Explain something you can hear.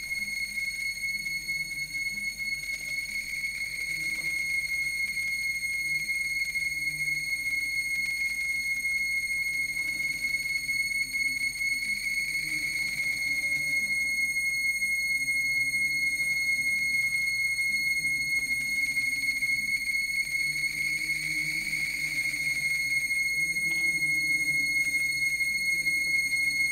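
A high electronic tone drones steadily through a loudspeaker.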